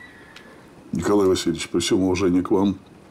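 A second man answers in a low, deep voice.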